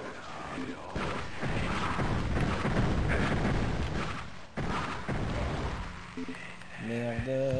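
Game weapons fire with rough blasts.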